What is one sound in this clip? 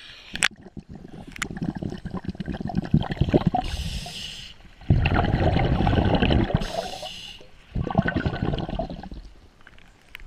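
Scuba bubbles gurgle and rumble loudly underwater.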